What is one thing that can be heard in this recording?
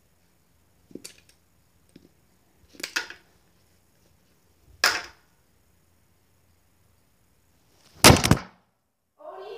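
Small plastic toy pieces clatter and knock on a carpeted floor.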